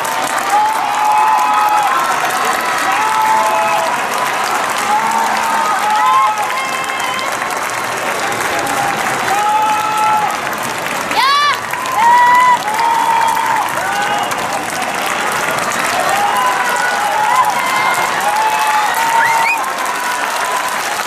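A large stadium crowd sings and chants loudly in the distance.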